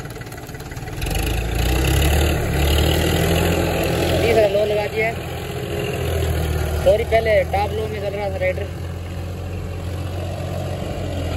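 A harrow scrapes and churns through dry soil.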